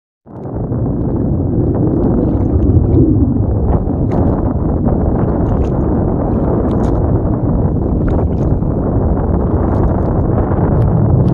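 Shallow water laps and ripples gently over sand.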